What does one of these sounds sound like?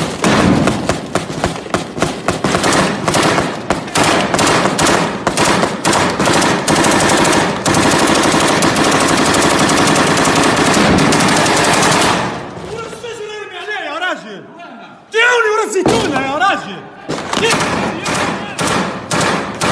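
Gunfire cracks outdoors.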